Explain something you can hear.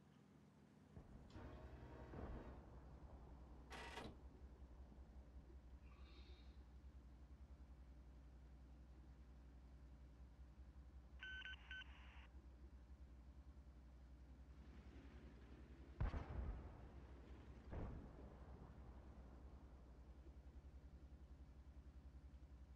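A tank engine rumbles low and steady.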